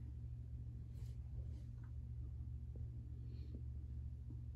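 A chair creaks softly.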